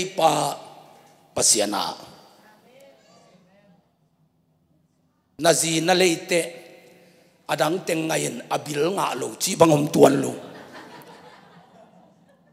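A man preaches loudly and with passion into a microphone in an echoing hall.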